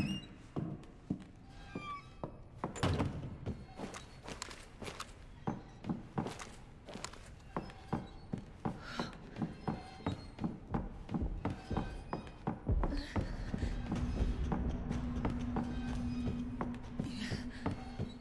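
Footsteps thud on wooden stairs and floorboards at a steady walking pace.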